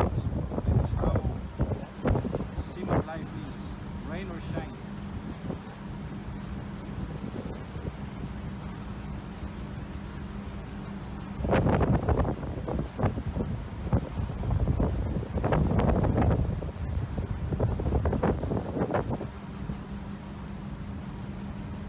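Waves rush along the side of a ship.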